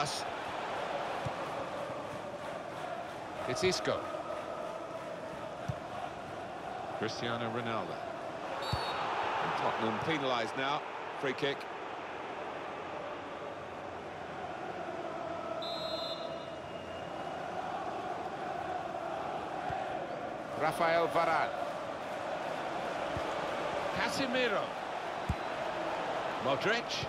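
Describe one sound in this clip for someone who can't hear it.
A large stadium crowd murmurs and roars.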